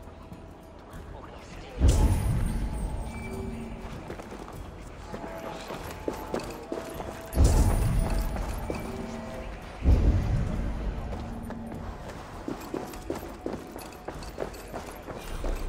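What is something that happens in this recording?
Footsteps walk on a hard floor.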